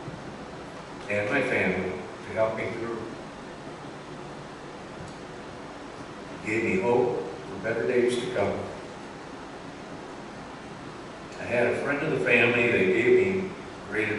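An elderly man speaks calmly through a microphone, in short phrases with pauses.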